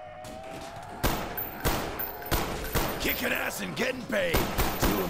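Rifle shots fire in quick, loud bursts.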